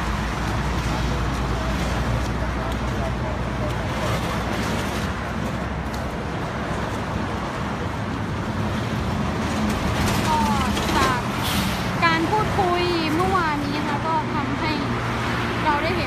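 Traffic rumbles past steadily on a nearby road.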